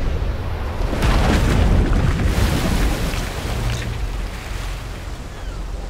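Stormy waves roar and crash.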